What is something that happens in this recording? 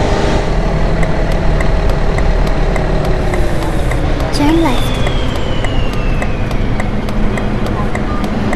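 A bus indicator ticks rhythmically.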